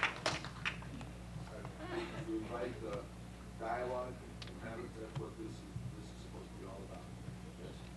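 An older man speaks to an audience.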